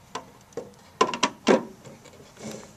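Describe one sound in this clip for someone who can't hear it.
A metal panel knocks and clatters as it is handled.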